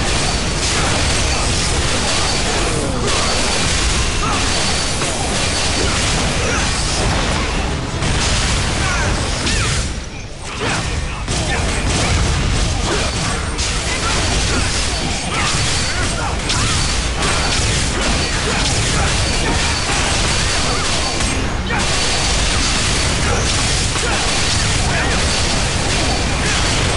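Fighting sounds of blows and magic blasts crash and burst rapidly.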